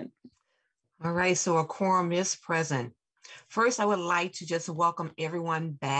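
A middle-aged woman speaks with animation over an online call.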